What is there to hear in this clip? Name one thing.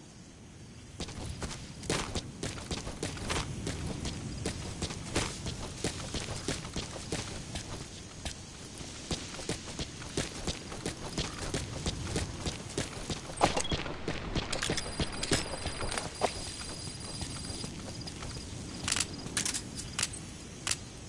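Footsteps crunch quickly over dry ground and brush.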